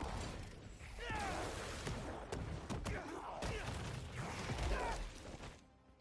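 A monster growls and screeches.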